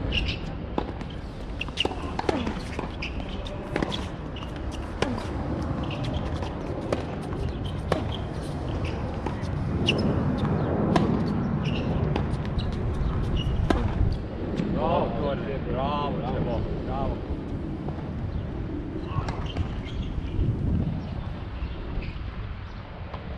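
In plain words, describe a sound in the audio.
Sneakers scuff and patter on a hard court.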